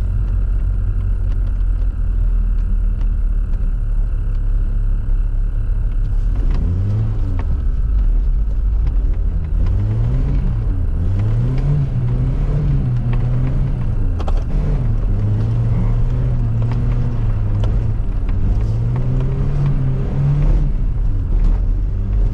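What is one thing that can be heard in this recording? Tyres crunch and rumble over packed snow.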